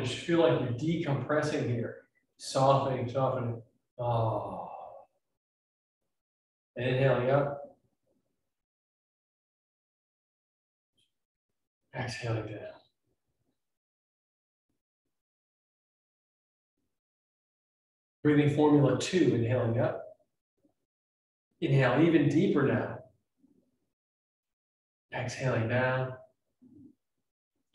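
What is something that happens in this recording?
A young man speaks calmly in short phrases, close by, with long pauses between them.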